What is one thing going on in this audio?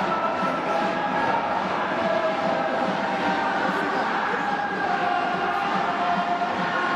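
A brass band plays a lively tune.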